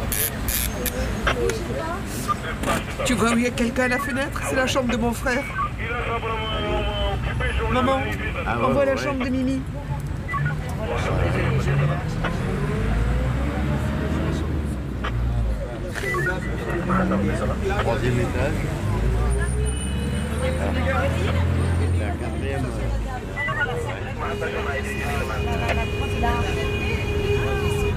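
A bus engine rumbles and revs as the bus drives.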